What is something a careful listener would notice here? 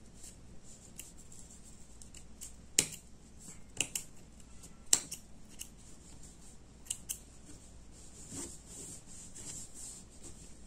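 Quilted fabric rustles as hands handle and fold it.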